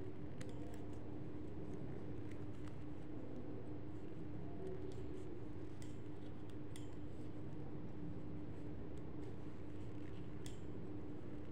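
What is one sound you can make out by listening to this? Knitting needles click and tap lightly together.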